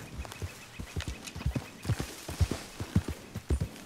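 Leaves and grass rustle as a horse pushes through brush.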